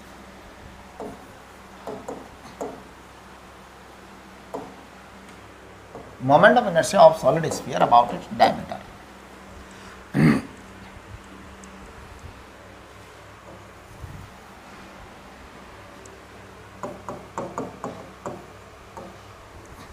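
A pen taps and squeaks faintly on a board.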